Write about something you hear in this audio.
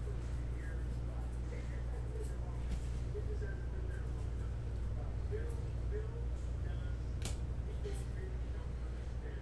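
Trading cards flick and rustle as they are shuffled through.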